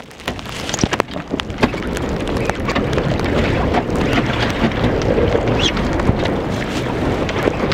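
Choppy water splashes against a boat's hull.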